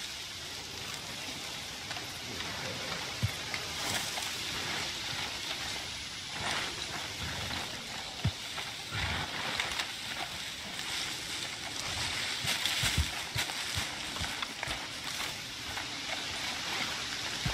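Footsteps crunch through leaves and undergrowth.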